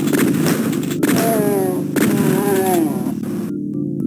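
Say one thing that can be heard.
Monsters let out gurgling death cries that slide downward.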